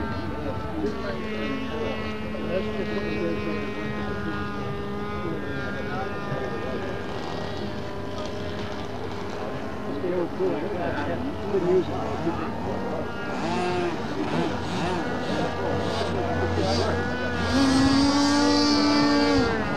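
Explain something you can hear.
A paramotor engine drones overhead.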